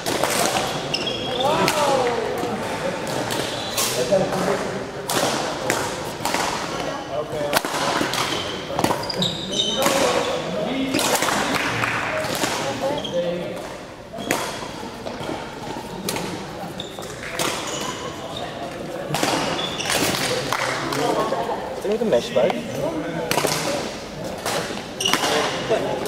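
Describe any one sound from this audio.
Badminton rackets strike a shuttlecock in quick rallies.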